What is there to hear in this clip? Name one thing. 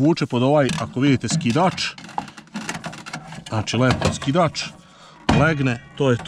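A hand rubs against a metal disc.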